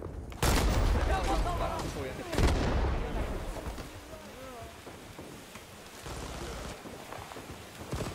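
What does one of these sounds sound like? Flames roar and crackle.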